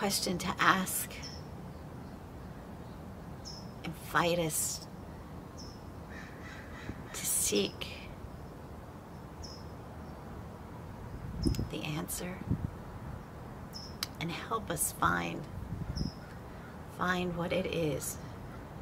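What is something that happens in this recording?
A middle-aged woman speaks slowly and haltingly, close to the microphone, with long pauses.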